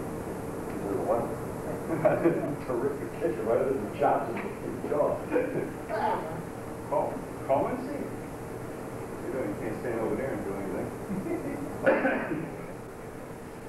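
A man talks calmly.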